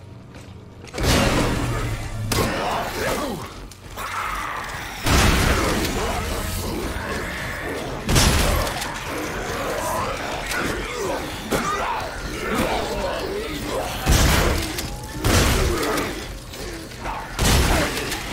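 Gunshots boom with loud echoing cracks.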